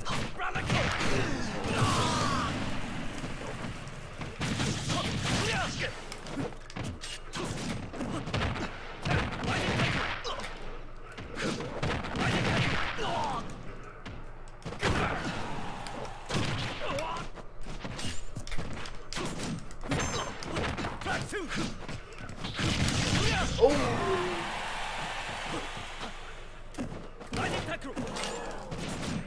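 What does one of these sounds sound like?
Hits and blasts crack and thump in a fighting video game.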